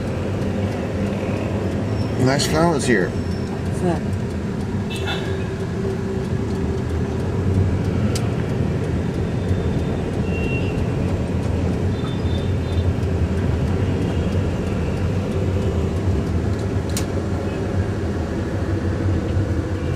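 Motorbikes rumble past in busy street traffic.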